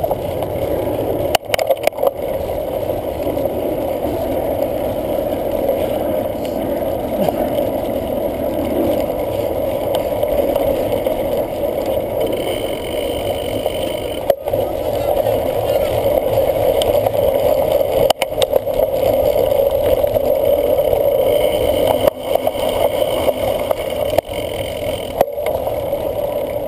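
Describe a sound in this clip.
A cyclocross bike rattles and jolts over grass and dirt.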